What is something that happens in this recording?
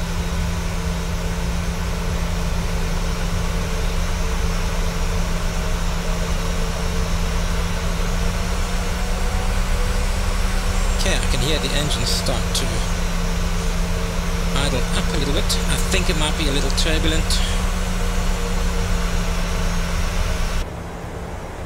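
Jet engines roar steadily outside the airliner.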